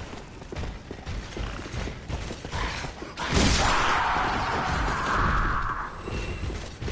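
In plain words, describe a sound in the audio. A sword whooshes through the air with a fiery roar.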